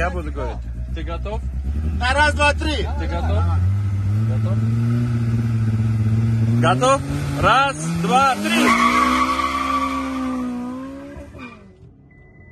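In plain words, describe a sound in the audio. A car engine revs loudly and rises in pitch close by.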